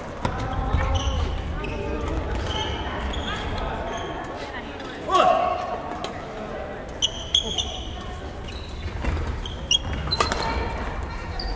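Rackets strike shuttlecocks with sharp pops in a large echoing hall.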